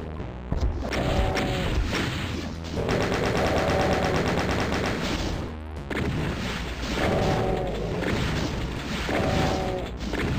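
Game demons roar and growl.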